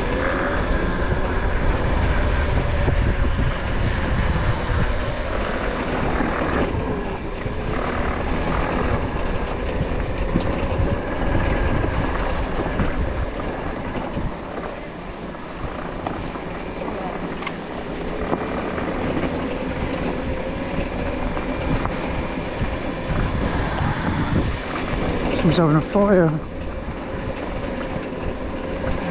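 Tyres crunch over gravel and dry leaves.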